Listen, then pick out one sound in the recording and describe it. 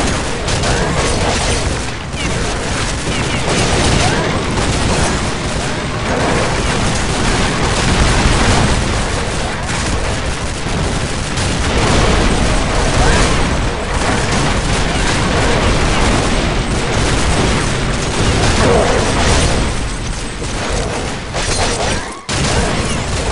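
A flamethrower roars in bursts of fire.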